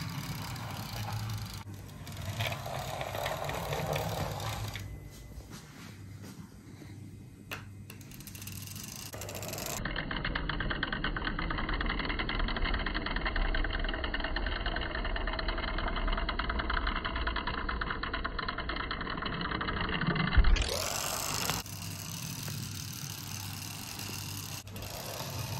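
A toy car's wheels roll softly along a hard surface.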